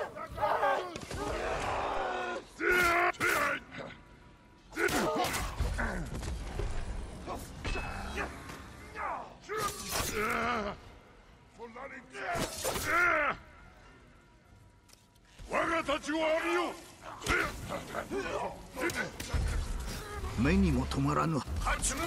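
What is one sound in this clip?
Swords clash and slash repeatedly.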